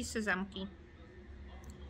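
A woman talks softly close to the microphone.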